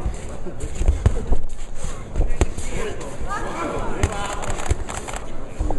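Punches thud against a boxer's body and gloves.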